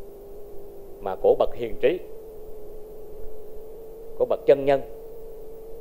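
A middle-aged man speaks cheerfully into a microphone in short bursts.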